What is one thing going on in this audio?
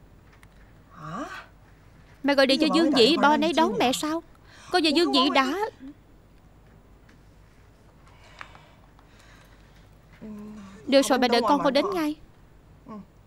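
A young woman speaks anxiously on a phone, close by.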